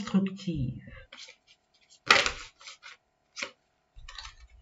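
Cards shuffle and rustle.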